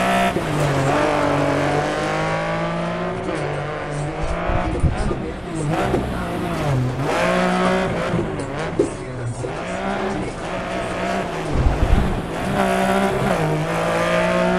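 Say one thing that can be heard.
A rally car engine revs hard, rising and falling in pitch as it shifts gears.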